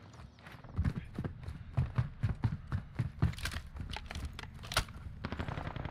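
Quick footsteps thud on a hard floor.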